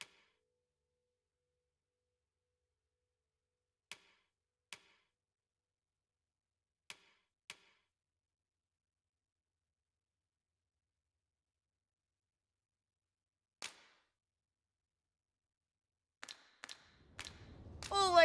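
Short soft menu clicks sound now and then.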